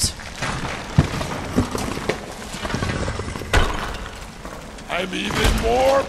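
Heavy stone blocks crash and crumble.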